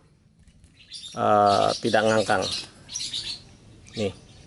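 A baby bird chirps faintly up close.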